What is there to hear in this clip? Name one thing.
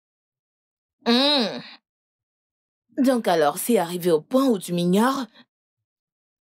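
A young woman speaks close by in a troubled voice.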